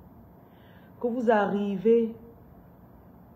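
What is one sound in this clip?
A woman speaks emotionally, close up.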